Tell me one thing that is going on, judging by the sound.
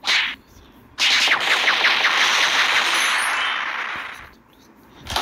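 Explosions crash and rumble.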